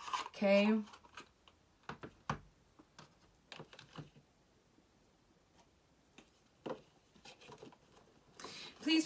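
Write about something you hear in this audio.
Small boxes tap and knock on a table.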